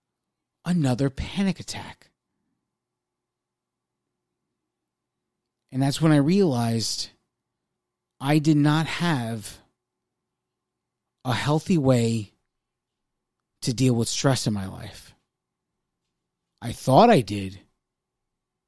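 A man speaks into a microphone in short bursts, with long pauses between them.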